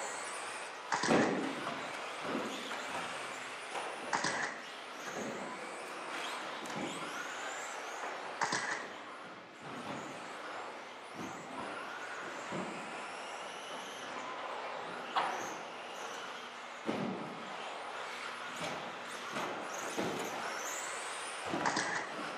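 Radio-controlled cars thud and clatter as they land on ramps.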